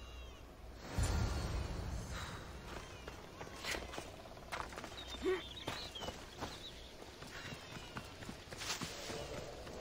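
Footsteps run through grass and brush.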